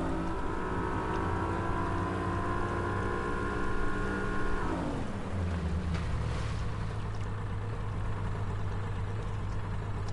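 A boat's outboard motor drones steadily, then winds down to a low idle.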